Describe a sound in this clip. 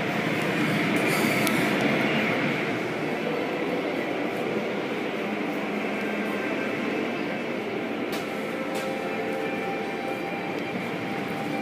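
A moving vehicle rumbles steadily, heard from inside.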